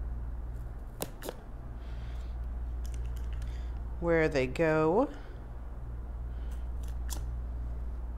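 A hand-held hole punch clicks sharply as it punches through thick card.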